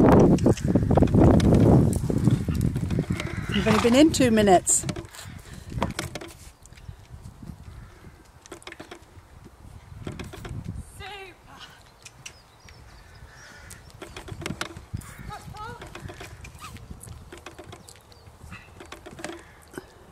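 A horse's hooves thud softly on loose ground at a canter.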